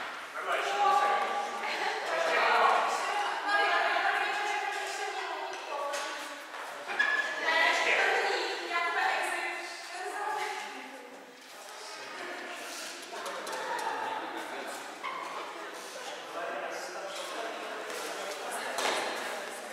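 Shuttlecocks are struck with rackets, giving sharp taps in a large echoing hall.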